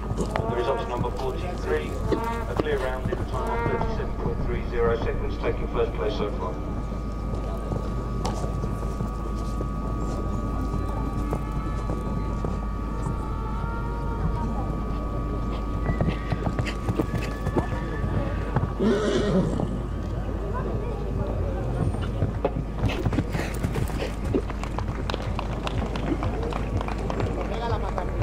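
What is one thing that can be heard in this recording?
Horse hooves thud on soft sand at a canter.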